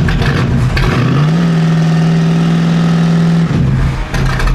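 A car engine revs up and holds high before dropping back.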